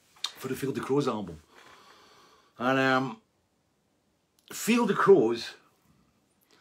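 An older man speaks calmly and thoughtfully, close to a microphone, with short pauses.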